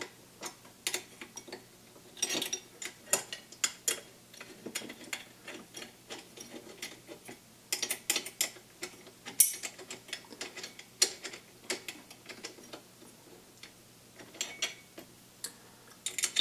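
Small parts click and rattle as hands work on a machine close by.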